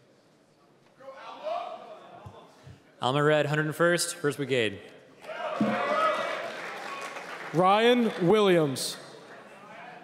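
A man speaks loudly into a microphone, heard over loudspeakers in a large echoing hall.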